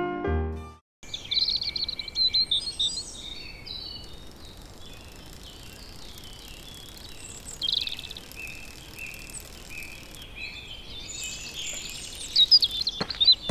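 Birds chirp and twitter outdoors.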